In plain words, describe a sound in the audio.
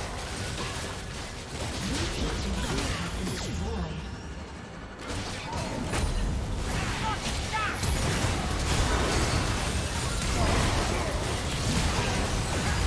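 Magic spells crackle and burst in a noisy battle.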